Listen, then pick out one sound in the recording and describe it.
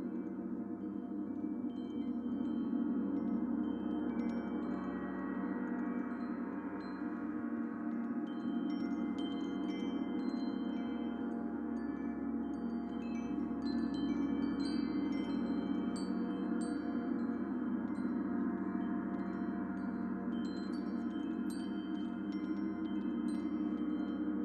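A gong rumbles softly and swells.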